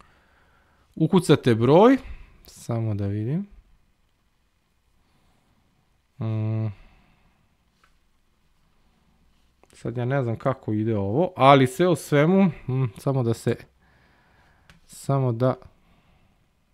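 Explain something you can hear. A man speaks calmly and close into a microphone, with pauses.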